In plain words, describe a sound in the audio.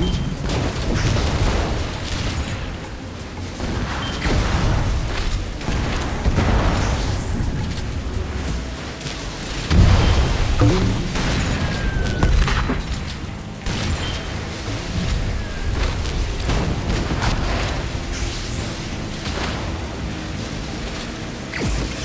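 Water splashes and sprays around a racing boat.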